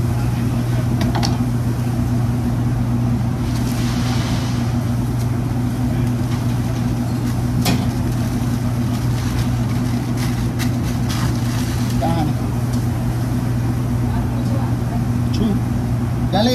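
Utensils clink and clatter on a counter.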